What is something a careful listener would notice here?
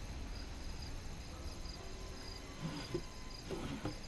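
A wooden drawer slides open.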